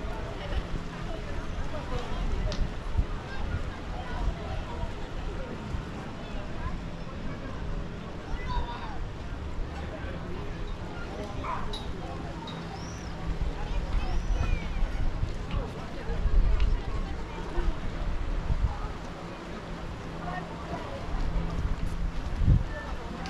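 Gentle waves lap against rocks near the shore.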